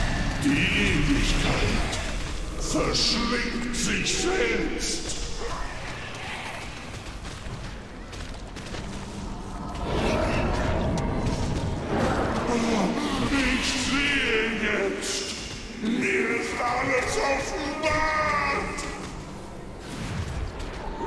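Spell effects whoosh and crackle in a fast-paced game battle.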